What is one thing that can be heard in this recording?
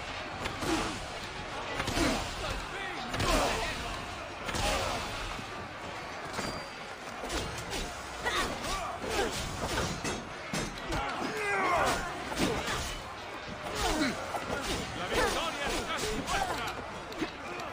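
Swords clash and strike shields in a fight.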